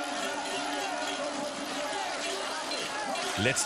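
A crowd cheers outdoors.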